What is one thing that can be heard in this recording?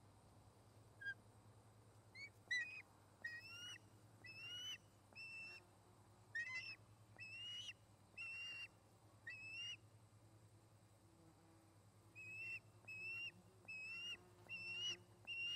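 Young ospreys call with repeated high, piercing chirps close by.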